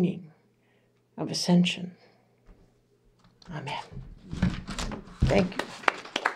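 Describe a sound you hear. An older woman speaks calmly into a microphone.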